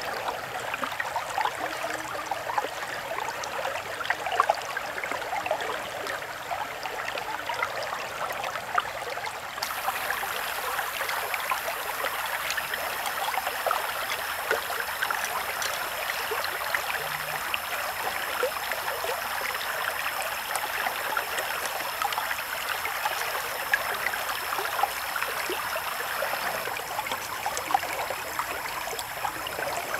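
A knife slices and scrapes through raw fish.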